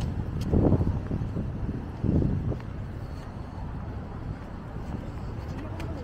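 Footsteps fall on pavement.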